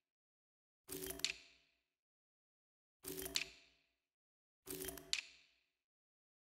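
Short menu clicks sound as selections change.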